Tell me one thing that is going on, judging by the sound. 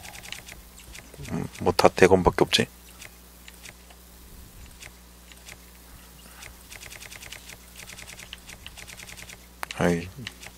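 Soft menu clicks tick rapidly as a selection scrolls.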